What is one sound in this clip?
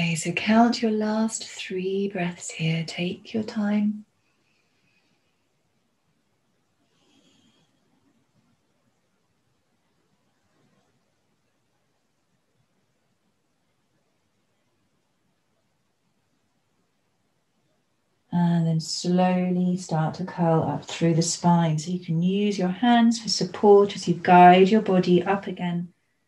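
A young woman speaks calmly and clearly into a nearby microphone.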